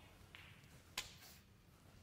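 A snooker cue strikes a ball with a sharp click.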